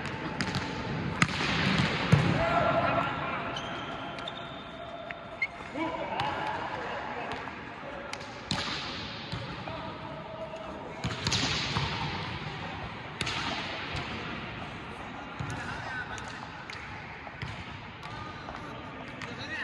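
A volleyball is struck hard with a sharp smack in a large echoing hall.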